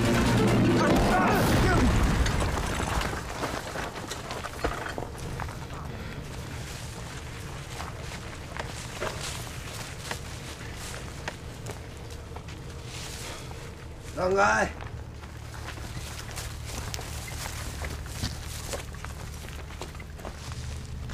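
Torches crackle and roar.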